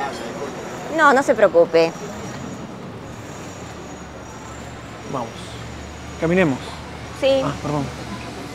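A woman talks animatedly nearby.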